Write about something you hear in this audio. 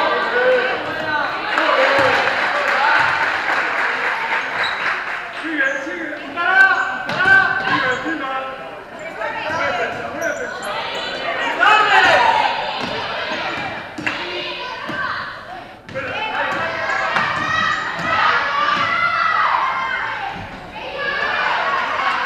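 Children shout and call out across a large echoing hall.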